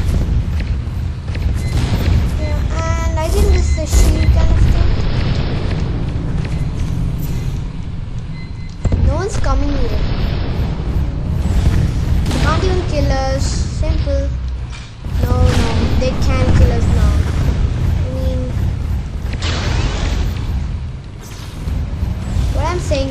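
Cannon shots fire with sharp bangs.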